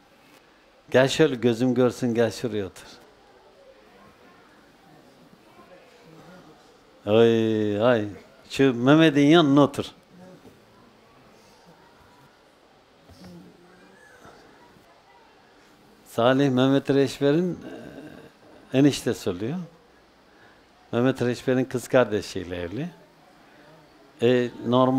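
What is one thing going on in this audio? An elderly man speaks calmly through a microphone, in short phrases with pauses.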